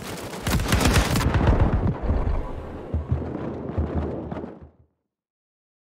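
An explosion booms nearby and rumbles away.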